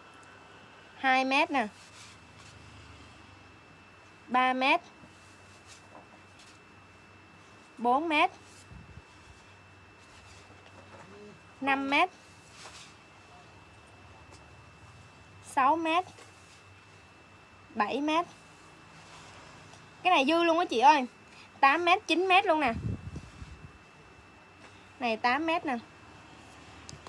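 A young woman speaks in short, lively phrases close by.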